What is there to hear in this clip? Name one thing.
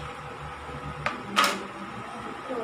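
A metal bowl clanks sharply against the rim of another metal bowl.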